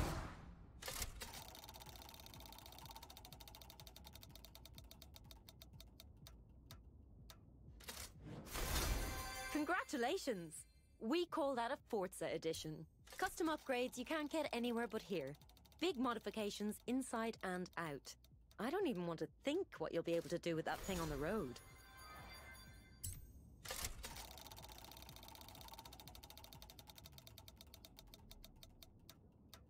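Rapid ticking clicks sound as a prize list spins and slows down.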